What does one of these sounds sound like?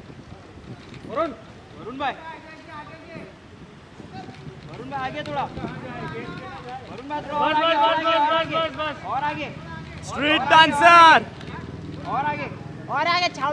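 Several men call out loudly nearby, outdoors.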